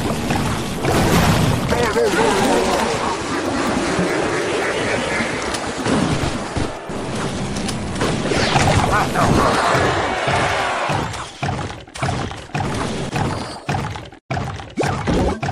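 Cartoonish battle sound effects clash and burst with small explosions and zaps.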